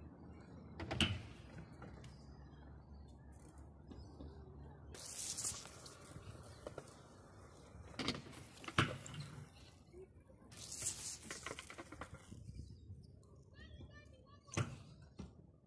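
A bike lands hard on concrete with a sharp clack.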